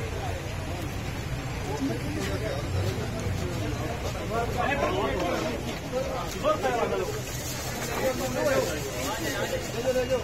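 A crowd of men talks and shouts outdoors.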